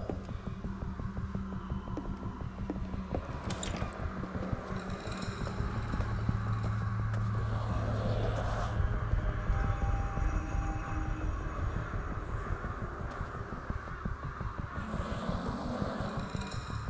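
Footsteps tread on a hard, wet floor.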